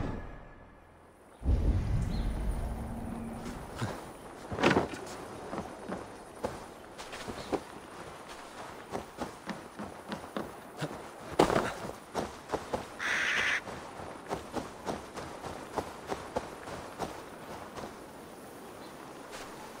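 Footsteps crunch over soft ground and gravel.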